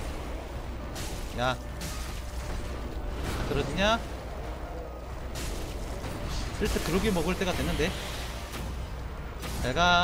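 A sword clangs against a beast's hide.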